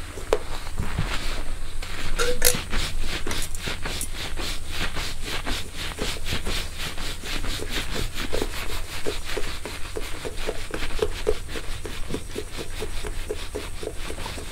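Fingers scratch and rustle through hair right beside a microphone in quick, even strokes.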